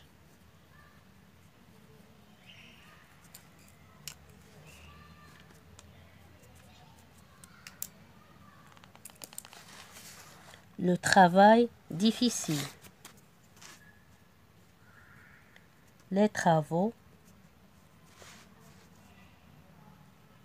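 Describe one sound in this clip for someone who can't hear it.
A pen scratches softly across paper as it writes.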